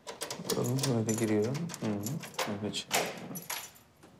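A key turns and a lock clicks.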